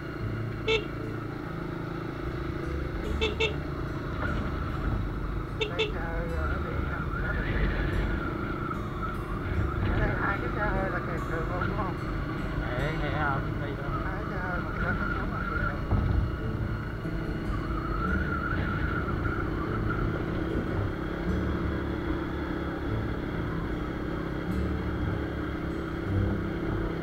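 A motorbike engine hums steadily while riding along.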